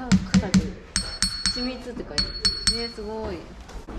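A small stone object is struck with a stick, ringing with clear chiming tones.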